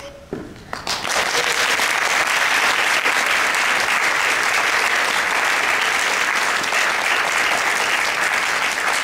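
An audience claps loudly in an echoing hall.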